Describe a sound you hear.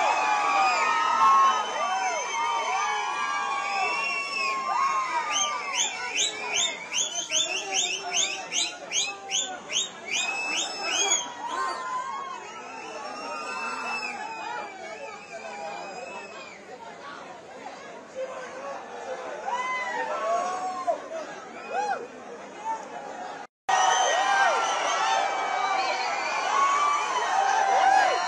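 A large crowd of men and women shouts and cheers excitedly all around, close by.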